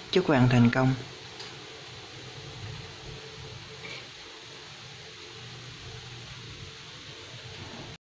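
A pot of stew simmers and bubbles softly.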